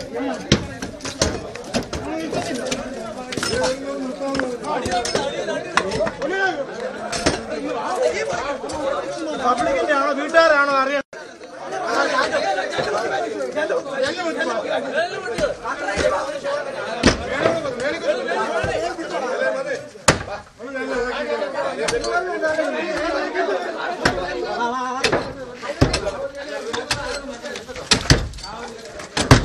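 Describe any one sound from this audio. Metal bars strike and chip a brick wall with sharp knocks.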